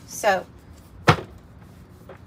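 A stack of cards taps down onto a wooden table.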